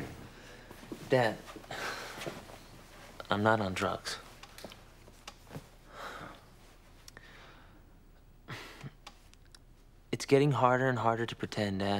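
A young man speaks calmly and quietly nearby.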